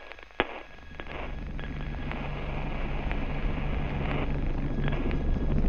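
A man talks through a headset microphone.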